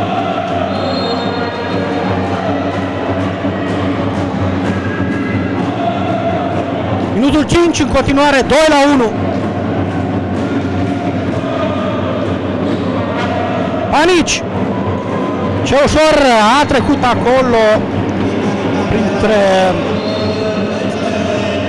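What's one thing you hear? A crowd of spectators cheers and chants in a large echoing hall.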